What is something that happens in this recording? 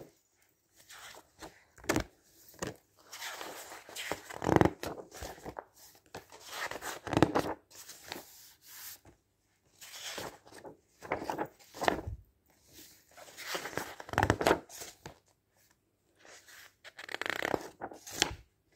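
Magazine pages rustle and flap as they are turned, close by.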